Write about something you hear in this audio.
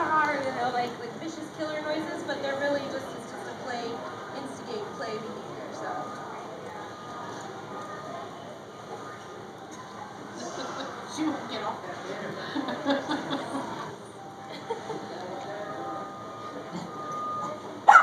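Puppies yip and growl as they play.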